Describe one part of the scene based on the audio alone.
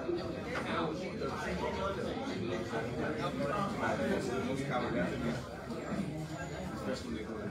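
Many people chatter quietly in the background.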